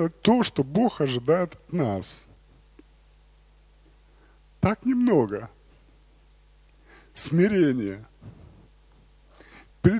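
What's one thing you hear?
A man speaks with animation through a microphone in a large echoing hall, pausing between phrases.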